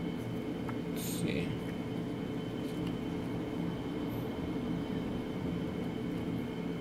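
Paper pages rustle as a booklet is flipped through.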